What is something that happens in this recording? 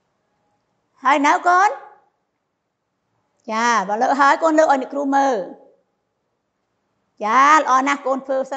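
A middle-aged woman speaks calmly and clearly into a small clip-on microphone, in short phrases with pauses.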